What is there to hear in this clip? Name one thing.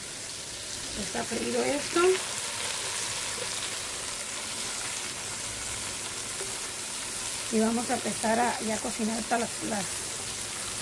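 A middle-aged woman speaks calmly nearby, outdoors.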